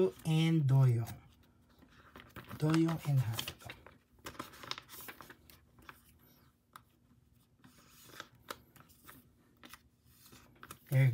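Plastic sleeves rustle and crinkle as cards are slipped in and out.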